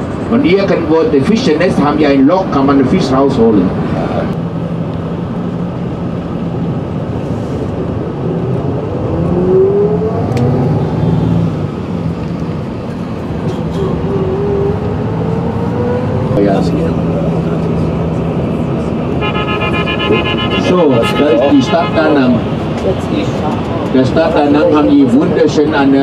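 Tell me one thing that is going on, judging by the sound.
A vehicle engine hums steadily on the road.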